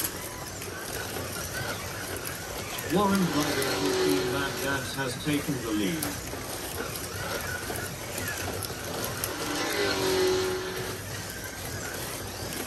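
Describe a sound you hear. Small electric slot cars whir around a track.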